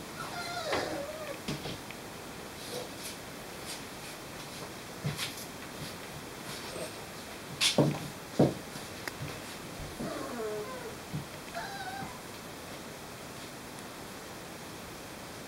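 A puppy's paws scuffle on a towel.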